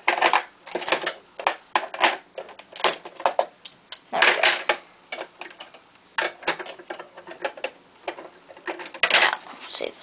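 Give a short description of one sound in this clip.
Plastic toy bricks click and rattle as a hand moves them.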